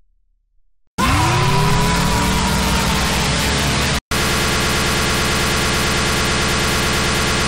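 A loud distorted game screech blares.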